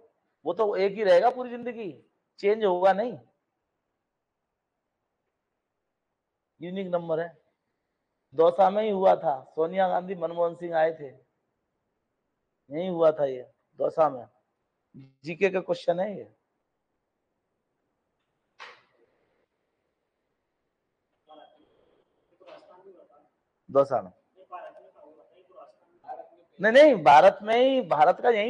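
A middle-aged man speaks in bursts through a microphone, lecturing calmly.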